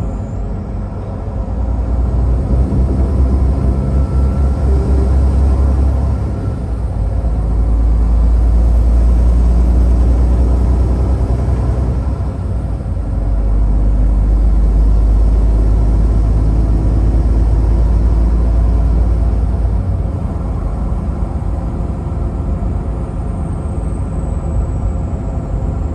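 A vehicle's engine hums steadily as it drives along a highway.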